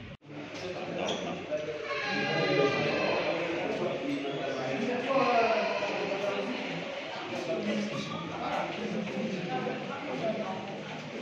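Men talk close by in an echoing corridor.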